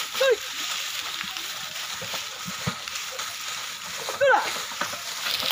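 A man calls out sharply to oxen outdoors.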